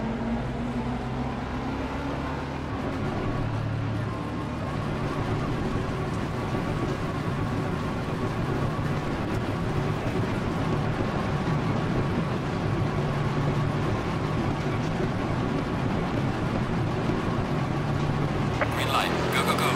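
A racing car engine drones steadily at low revs.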